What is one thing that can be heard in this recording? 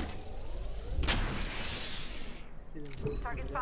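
A shield charger hums and whooshes, rising in pitch.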